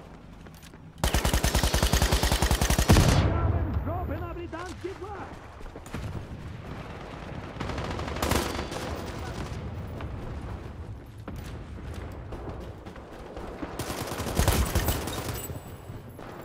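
A rifle fires in loud rapid bursts.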